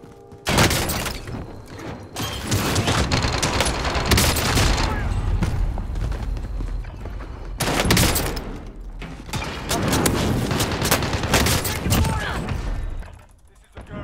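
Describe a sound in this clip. Gunfire and explosions from a video game crash loudly.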